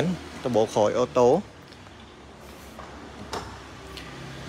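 A car's tailgate thuds shut.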